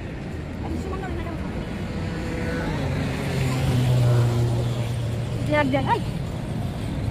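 A young woman answers calmly, close by.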